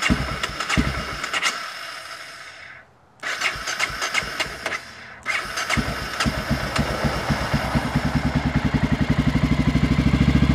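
A dirt bike engine revs and idles close by, dropping out briefly before catching again.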